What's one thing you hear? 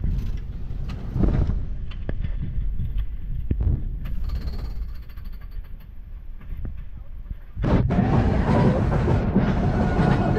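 A roller coaster car clatters and clicks along its track.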